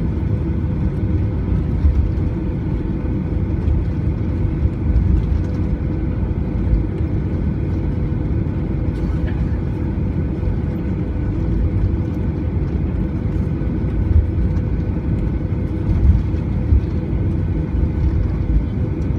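Airplane wheels rumble and thump over the runway.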